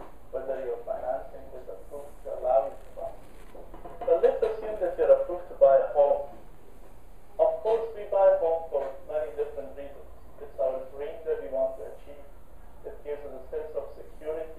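A man talks calmly, heard muffled through a loudspeaker.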